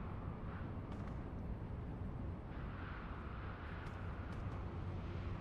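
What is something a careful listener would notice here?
A spaceship's engine hums low and steadily.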